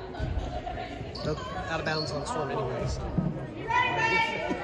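Young girls call out to each other, echoing in a large gym.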